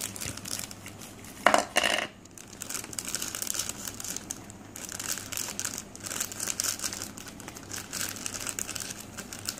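A plastic bag crinkles and rustles in small hands.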